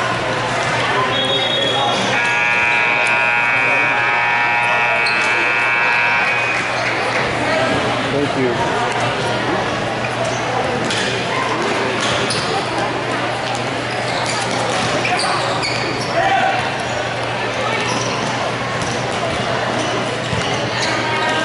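Spectators chatter in the background.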